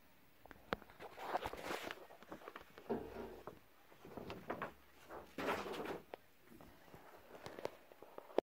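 Paper pages rustle and flap as they are handled.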